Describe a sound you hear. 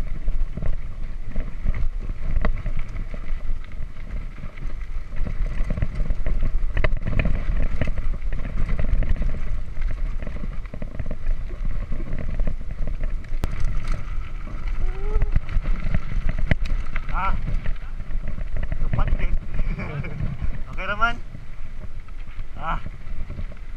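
Bicycle tyres crunch and rattle over a bumpy dirt track.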